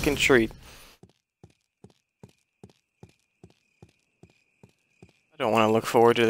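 Slow footsteps tap on a hard floor.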